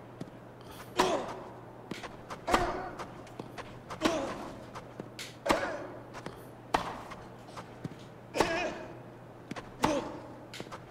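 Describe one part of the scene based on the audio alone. A tennis ball is struck back and forth with sharp pops of the racket.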